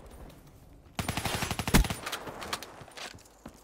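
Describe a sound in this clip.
An automatic rifle fires a rapid burst.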